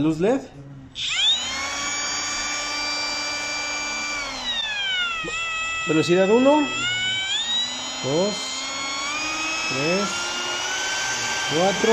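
A small electric router motor whirs with a high, steady whine.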